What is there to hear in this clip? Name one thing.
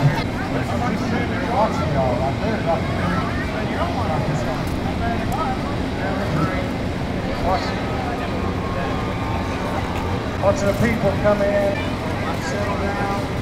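A noisy crowd murmurs outdoors in the background.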